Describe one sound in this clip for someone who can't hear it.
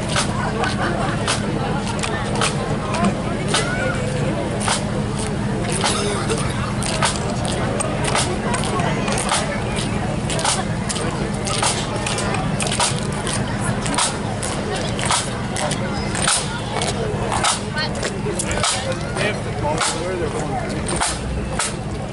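Drums beat a steady marching rhythm.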